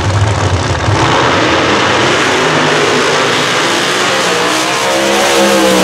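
Two race cars launch with a deafening roar and speed away.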